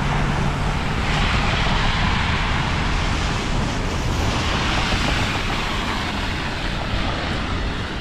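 Car tyres hiss through wet slush as vehicles pass.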